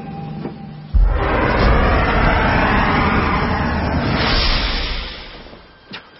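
A loud rushing blast roars and then fades.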